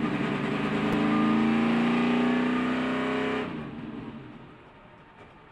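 A race car engine roars loudly close by, then quickly winds down.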